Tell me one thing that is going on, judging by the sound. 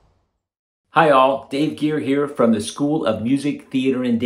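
A middle-aged man speaks calmly and warmly into a microphone, close by.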